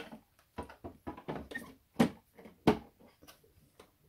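A plastic water tank clicks and knocks into place on a coffee machine.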